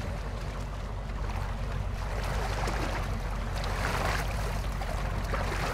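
Water splashes and sloshes as a swimmer moves through it.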